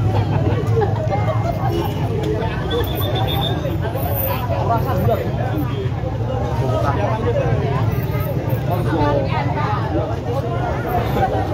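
A crowd of men talk over one another with agitation nearby.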